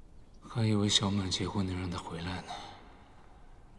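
A young man speaks calmly and quietly nearby.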